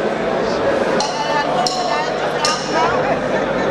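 Drums and cymbals are struck.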